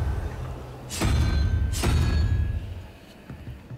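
A magical seal hums and shimmers loudly, then fades.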